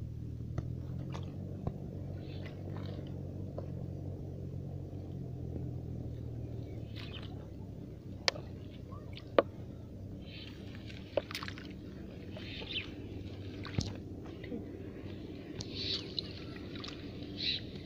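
Hands splash and swish in shallow water.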